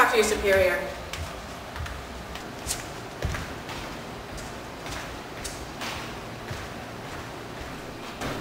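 Footsteps tap on a hard floor in an echoing corridor.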